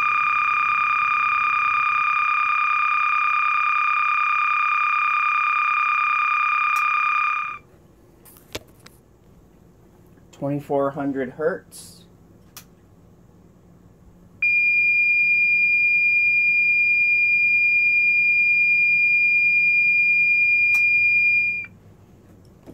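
A small electronic device gives off a steady, high electronic tone.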